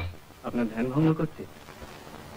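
A young man speaks.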